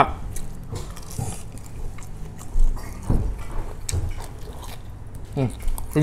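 A young man chews and smacks his lips while eating.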